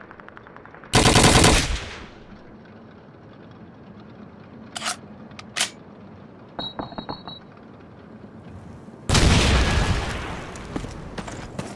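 Loud explosions boom nearby and rumble away.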